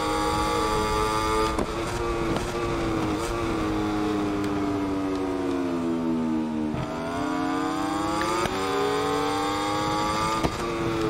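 A motorcycle engine screams at high revs, dropping in pitch while slowing for a bend and rising again as it speeds up.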